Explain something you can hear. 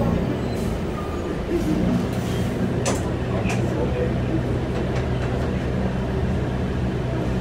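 City traffic passes outside the bus.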